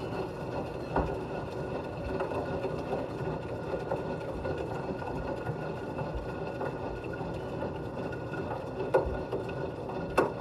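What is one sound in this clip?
A small ball thumps against the inside of a washing machine drum.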